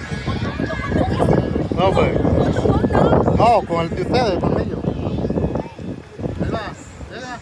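Young women talk and laugh excitedly close by, outdoors.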